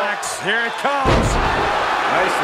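A heavy body slams onto a wrestling ring with a loud thud.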